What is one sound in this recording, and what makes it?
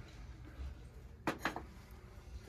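A ceramic figurine clicks against a metal shelf.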